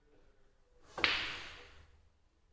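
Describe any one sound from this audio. Pool balls clack together.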